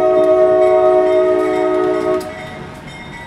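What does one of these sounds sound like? A train horn sounds a long steady blast in the distance.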